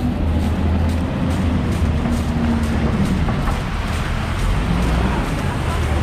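A bus engine drones as it passes close by.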